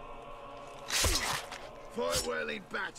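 Heavy blows land in a scuffle.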